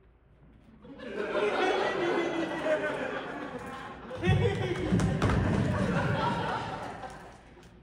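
A man sings in a full voice in a large, echoing hall.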